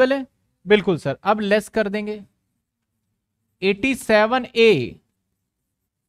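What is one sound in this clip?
A man speaks calmly into a close microphone, explaining.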